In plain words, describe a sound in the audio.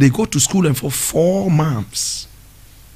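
A man speaks loudly and with animation into a microphone close by.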